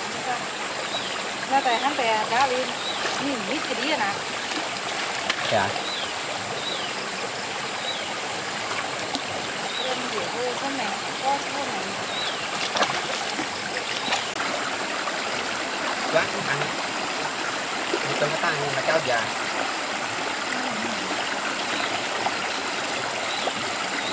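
A stream flows and gurgles over rocks.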